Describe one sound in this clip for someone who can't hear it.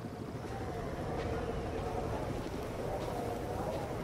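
A helicopter's rotor thrums nearby.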